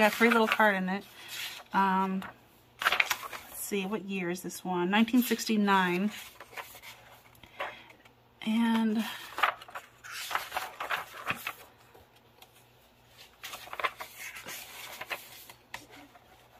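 Book pages rustle and flip as they are turned.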